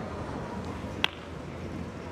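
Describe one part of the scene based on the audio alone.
Billiard balls clack sharply together.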